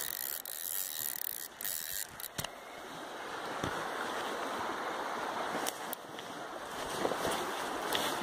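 A river rushes and swirls steadily close by.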